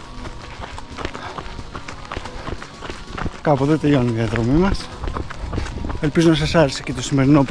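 Footsteps thud on pavement at a running pace.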